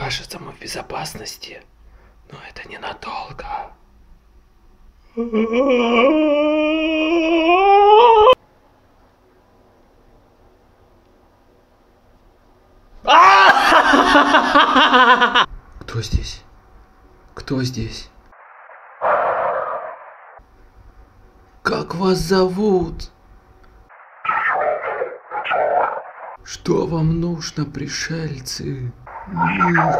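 A young man talks quietly and close by.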